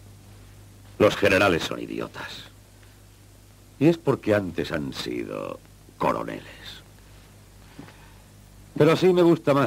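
A man speaks in a low, menacing voice close by.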